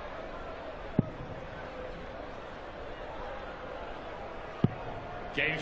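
A dart thuds into a dartboard.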